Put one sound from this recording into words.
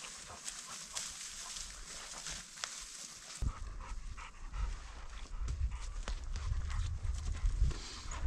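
Footsteps crunch through dry brush and twigs.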